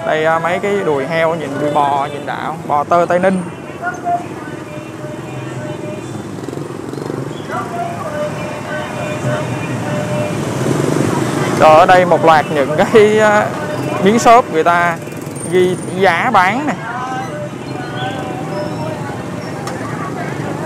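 Motorbike engines hum nearby.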